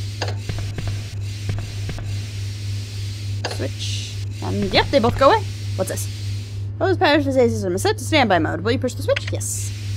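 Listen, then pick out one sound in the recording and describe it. Steam hisses steadily from a pipe.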